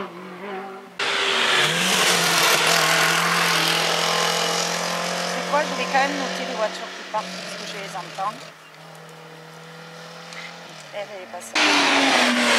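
A small car's engine roars loudly as it speeds past and shifts gears.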